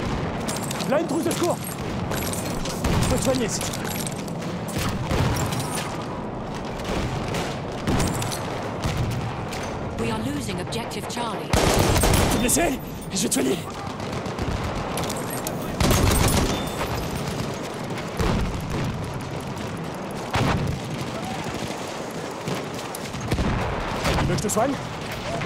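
Rifle shots crack sharply, one at a time.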